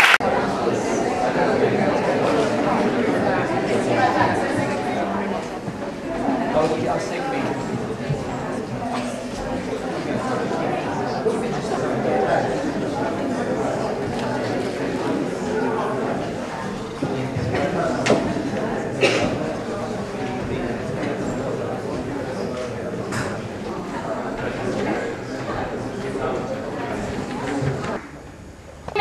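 A crowd of men and women chatters in a low murmur.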